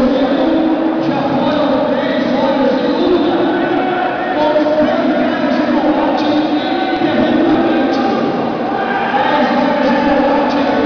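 A crowd talks and shouts throughout a large echoing hall.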